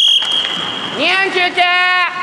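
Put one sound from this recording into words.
A young man shouts from across the rink.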